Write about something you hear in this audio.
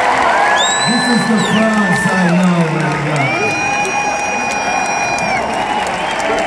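Fans in a crowd whistle shrilly.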